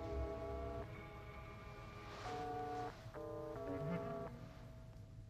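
An electronic keypad beeps in short tones as buttons are pressed.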